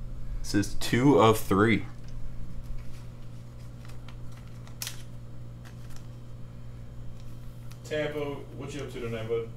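Plastic card sleeves crinkle and rustle in hands.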